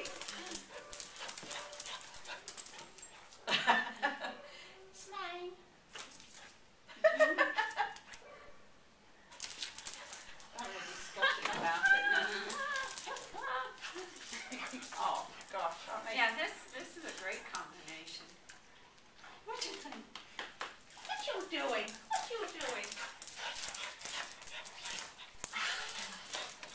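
Dogs growl playfully while tugging at a toy.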